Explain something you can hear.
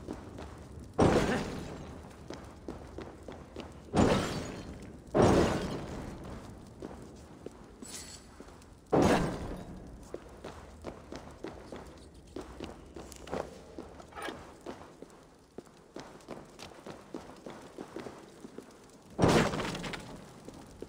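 Clay jars smash and shatter several times.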